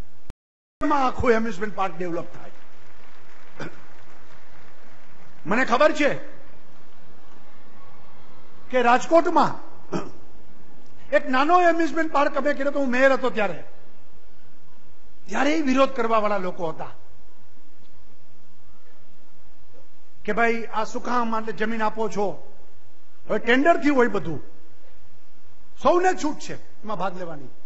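A middle-aged man speaks forcefully through a loudspeaker in short bursts with pauses.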